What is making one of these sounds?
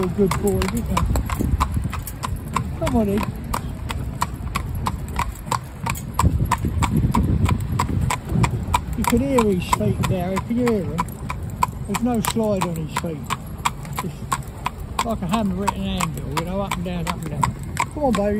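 A horse's hooves clop steadily on a paved road.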